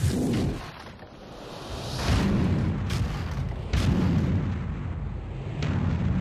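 Tree branches crack and crash as they are smashed.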